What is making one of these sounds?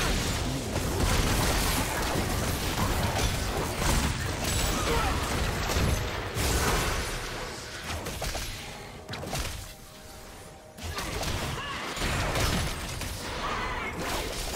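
Magical impacts and hits ring out repeatedly.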